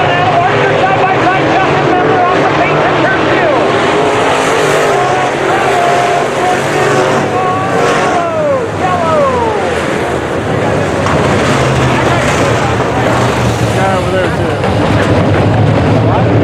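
Race car engines whine, rising and falling in pitch as the cars pass.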